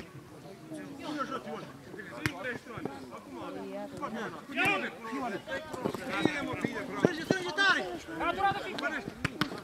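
Men shout to one another outdoors across an open field.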